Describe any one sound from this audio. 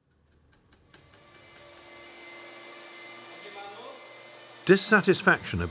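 Machines hum steadily.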